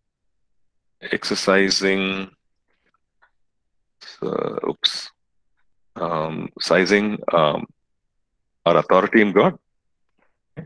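A middle-aged man speaks calmly in short phrases over an online call, with pauses between them.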